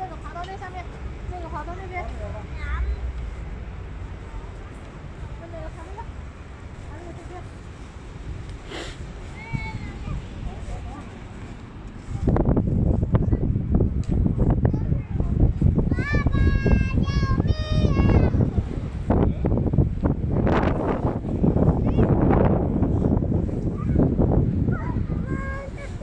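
A toddler babbles close by.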